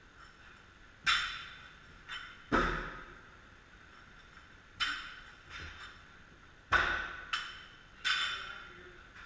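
A heavy medicine ball thuds, with each impact echoing in a large hard room.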